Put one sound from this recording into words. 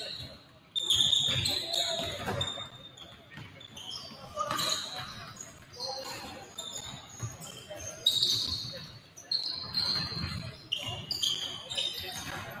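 Basketballs bounce on a hardwood floor in a large echoing gym.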